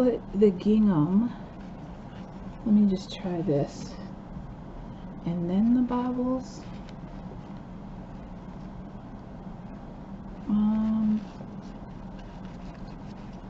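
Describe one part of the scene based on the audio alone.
Fabric and paper lace rustle softly as hands handle them.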